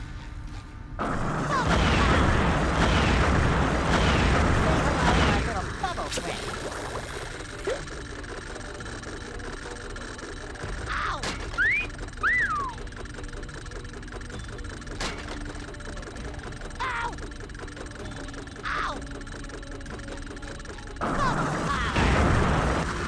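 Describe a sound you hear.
Bubbles fizz and burst loudly in a video game.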